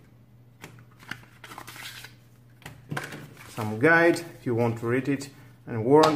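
Paper inserts rustle and flap as they are handled.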